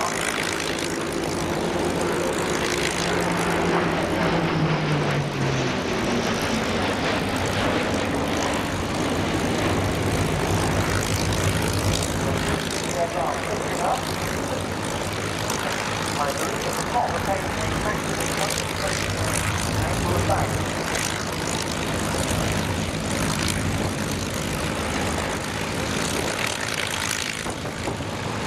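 Several propeller aircraft engines idle with a loud, steady drone.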